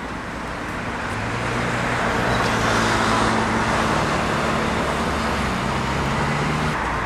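A van engine hums as it drives through a crossing.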